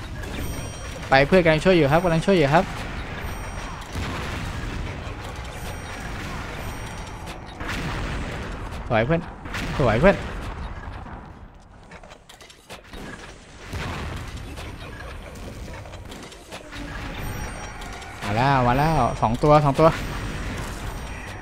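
A heavy weapon fires with loud booming blasts.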